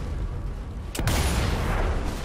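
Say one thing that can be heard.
A second rifle shot cracks loudly.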